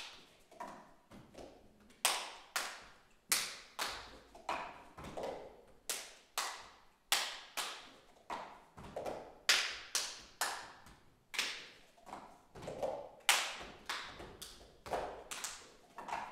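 Plastic cups knock and tap against a wooden stage floor in rhythm.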